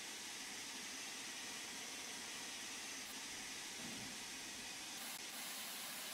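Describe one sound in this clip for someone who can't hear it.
A steam locomotive hisses and chuffs steadily.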